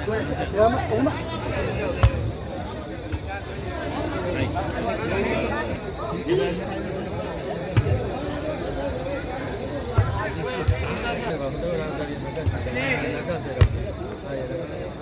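A crowd of spectators chatters steadily outdoors.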